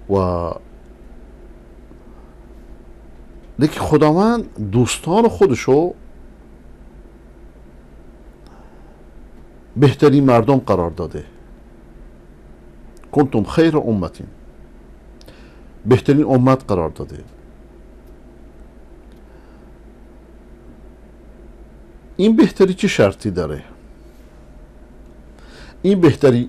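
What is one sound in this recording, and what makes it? A middle-aged man speaks calmly into a close microphone, in short phrases with long pauses.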